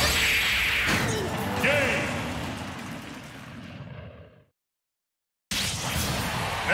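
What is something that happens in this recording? A video game explosion booms and whooshes loudly, then fades away.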